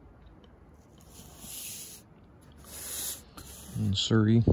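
Glossy paper rustles and slides as pages are handled.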